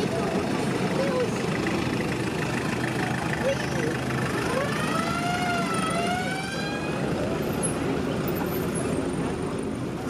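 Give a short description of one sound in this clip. A jeep engine idles nearby.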